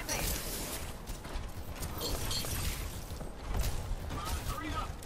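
Game weapons fire in rapid bursts.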